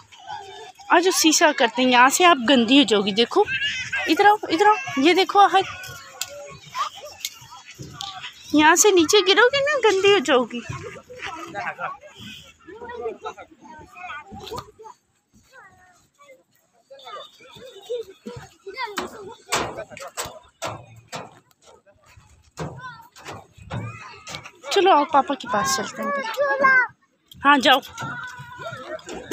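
A young girl chatters excitedly close by.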